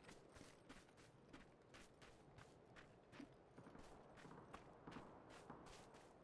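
Footsteps swish through grass at a steady pace.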